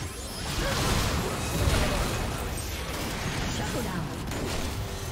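Magic spells crackle and blast in a fast video game fight.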